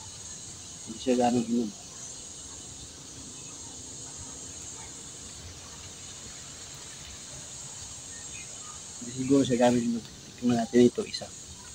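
A middle-aged man speaks in short bursts, close by.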